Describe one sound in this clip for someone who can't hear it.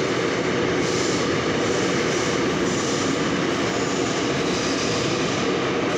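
A subway train's wheels clatter over the rail joints.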